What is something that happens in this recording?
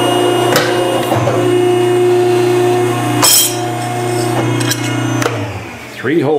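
A metalworking machine hums steadily.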